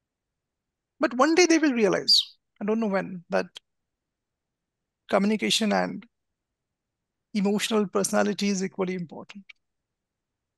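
A young man speaks calmly over an online call, in short bursts.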